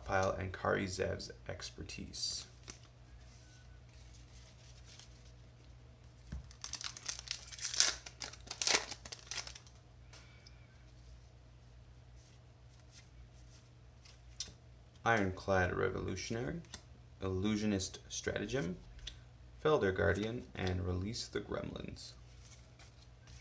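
Playing cards slide and rustle against one another.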